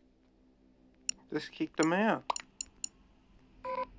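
Short electronic blips sound as chat messages pop up.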